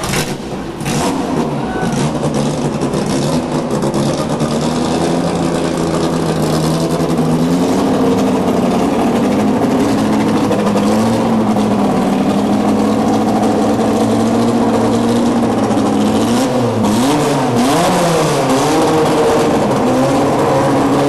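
A car engine idles loudly and revs now and then.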